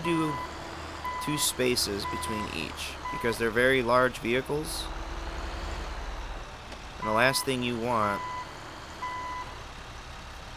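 A truck's reversing alarm beeps at a steady pace.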